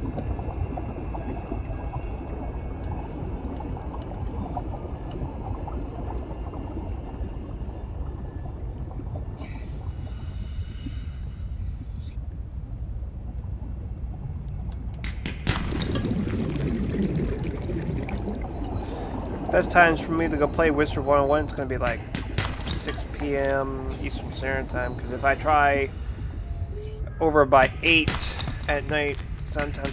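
Deep water murmurs in a low, steady rumble.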